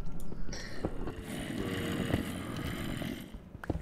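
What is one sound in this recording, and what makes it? A zombie groans nearby.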